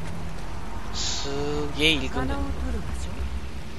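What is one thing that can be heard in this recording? A young woman speaks quietly to herself, close by.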